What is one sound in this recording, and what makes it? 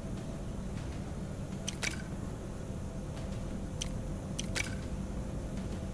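Flames crackle and burn steadily.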